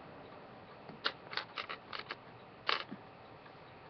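A hair clip clicks several times.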